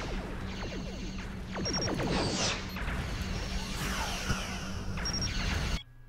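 Laser weapons fire in quick bursts.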